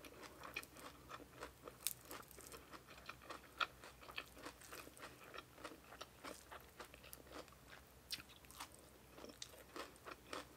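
Crisp vegetables snap and rustle between fingers.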